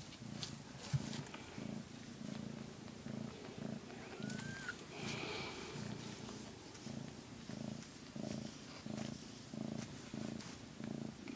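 A hand strokes a cat's fur with a soft rustle.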